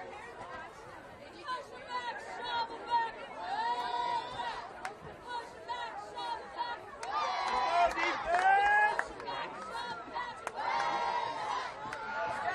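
A crowd of men and boys shouts and cheers outdoors.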